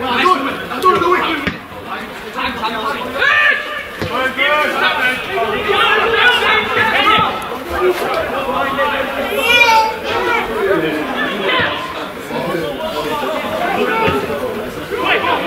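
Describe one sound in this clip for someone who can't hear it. Men shout and call to each other across an open outdoor field.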